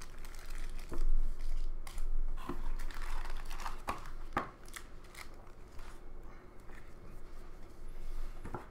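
Trading cards riffle and shuffle in hands.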